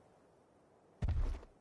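A body lands with a heavy thud on stony ground.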